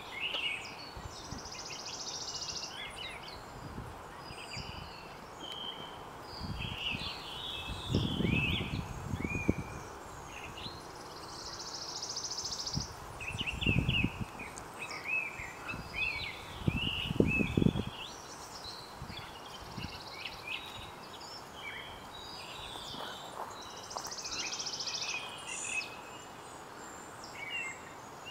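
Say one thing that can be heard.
A bird chirps and twitters nearby.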